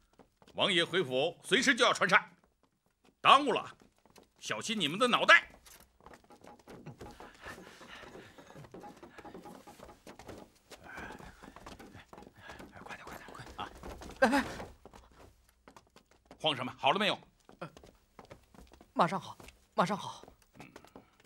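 A middle-aged man speaks sternly and loudly nearby.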